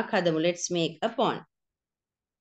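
A woman speaks clearly over an online call.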